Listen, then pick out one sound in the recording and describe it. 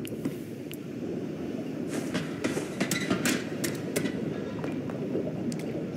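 Hands clank on a metal ladder while climbing.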